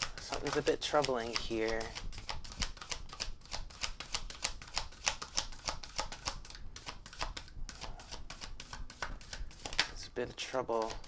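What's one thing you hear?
Playing cards riffle and flick quickly while being shuffled.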